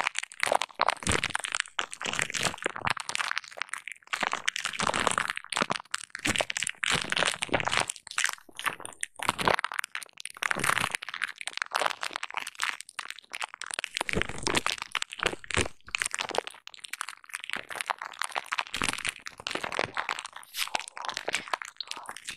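Fingernails scratch and tap on crinkly plastic bubble wrap close up.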